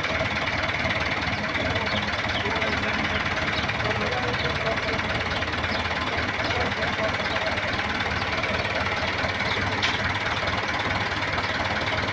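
A diesel tractor idles close by.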